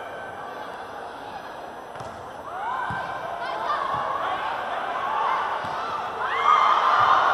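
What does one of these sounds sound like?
A crowd murmurs and cheers in a large echoing hall, growing louder.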